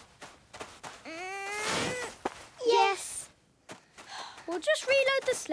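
A young animated voice exclaims excitedly.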